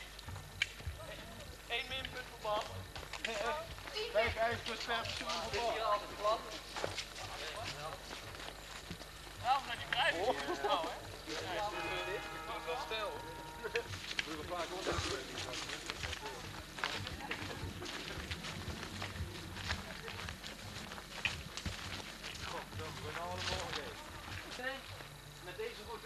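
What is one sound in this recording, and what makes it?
Young men talk and call out nearby, outdoors.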